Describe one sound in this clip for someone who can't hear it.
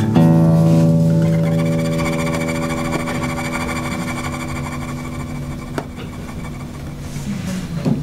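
An acoustic guitar chord rings out and slowly fades.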